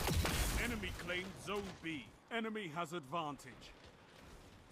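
A young man speaks close to a microphone.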